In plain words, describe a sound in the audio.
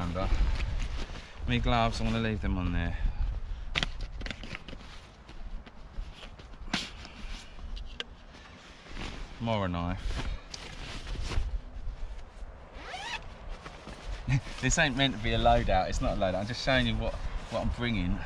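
Fabric and straps rustle as a pouch is handled.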